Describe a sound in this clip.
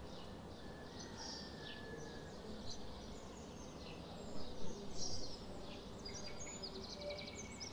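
Birds chirp and twitter high overhead.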